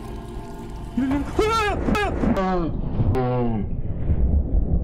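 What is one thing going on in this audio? A young man screams loudly into a microphone.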